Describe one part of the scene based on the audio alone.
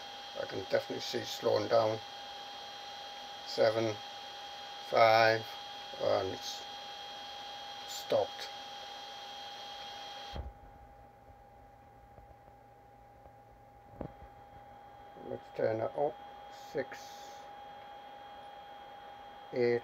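A small cooling fan whirs with a steady high hum.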